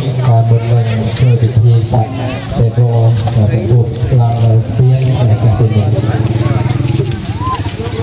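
Men chant together in low, steady voices.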